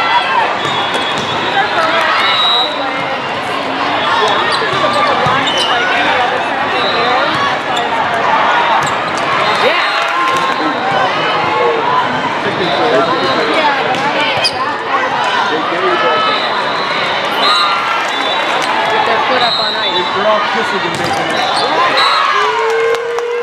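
Young women shout to each other on court.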